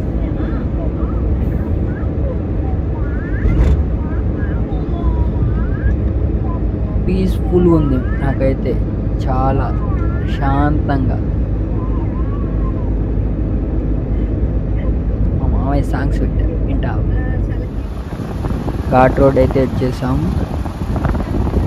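A car engine hums and tyres rumble steadily on the road from inside the moving car.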